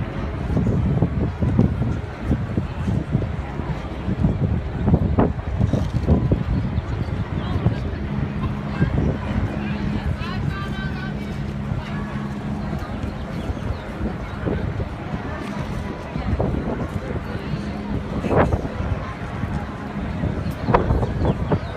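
A large crowd of people murmurs and talks outdoors.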